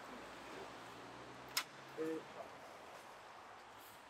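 A door clicks and opens.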